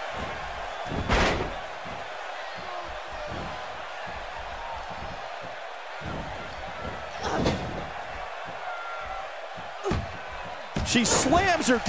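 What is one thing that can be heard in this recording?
A wrestler's body slams hard onto the ring mat with a heavy thud.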